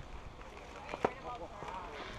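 A bat hits a baseball with a sharp crack.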